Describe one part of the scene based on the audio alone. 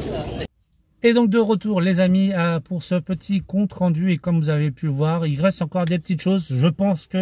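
A man talks calmly and closely to the listener.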